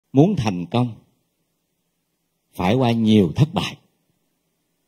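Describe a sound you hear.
A man speaks calmly into a microphone in short phrases.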